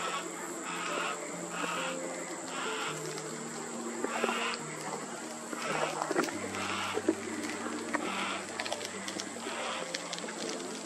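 A cockatoo cracks and chews at wood in a tree.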